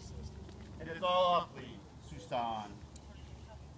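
A man calls out short, firm commands close by.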